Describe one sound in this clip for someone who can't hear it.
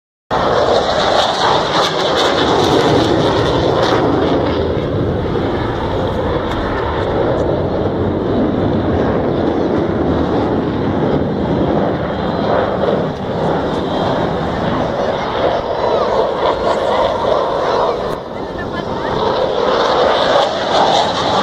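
A jet roars overhead, loud and steady.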